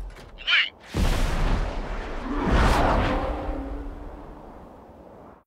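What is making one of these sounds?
Missiles launch with a rushing roar.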